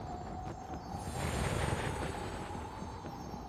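Wind rushes loudly for a moment, then eases.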